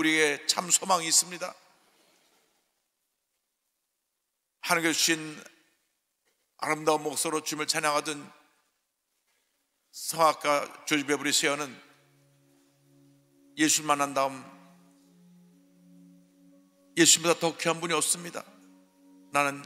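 A middle-aged man speaks calmly into a microphone, with pauses.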